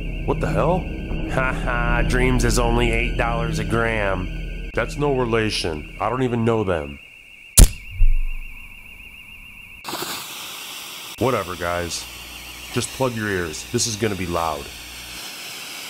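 A man speaks slowly in a drawling voice, close by.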